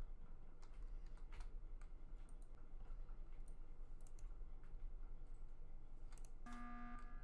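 Quick soft footsteps patter across a hard floor.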